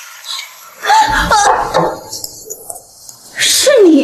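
A young woman cries out in distress.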